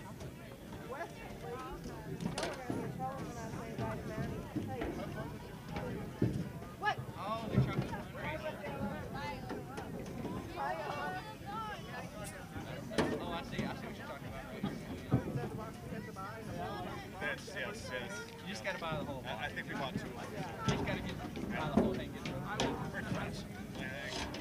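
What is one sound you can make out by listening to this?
A crowd of spectators chatters and cheers nearby, outdoors.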